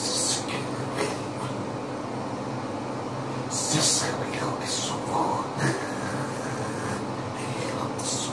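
A young man raps close into a handheld microphone.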